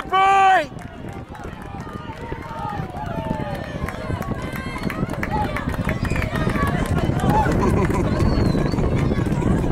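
A crowd of spectators shouts and calls out across an open outdoor field.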